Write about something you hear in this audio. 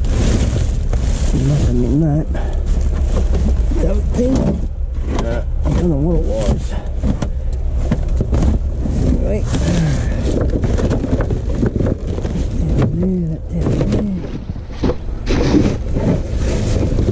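Plastic bags and paper rustle and crinkle as they are rummaged through.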